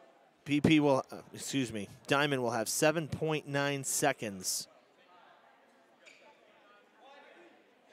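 A basketball bounces on a wooden floor in an echoing hall.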